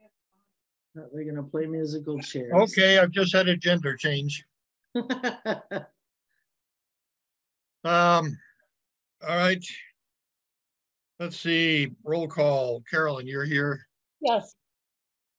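An elderly man talks calmly over an online call.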